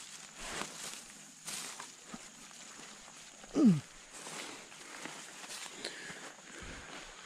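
A shallow stream trickles gently outdoors.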